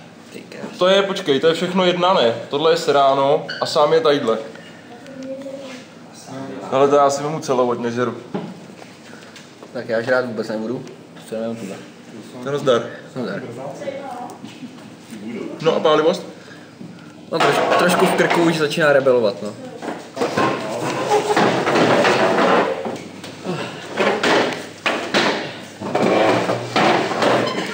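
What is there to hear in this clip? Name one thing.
A second young man answers and laughs close by.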